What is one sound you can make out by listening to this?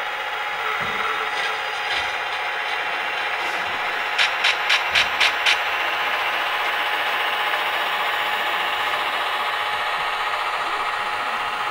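A model train's wheels roll and click along the track.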